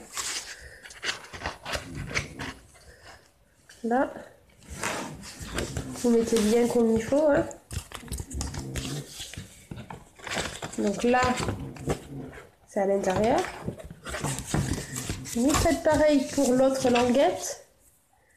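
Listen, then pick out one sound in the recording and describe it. Stiff paper rustles and flaps in a woman's hands.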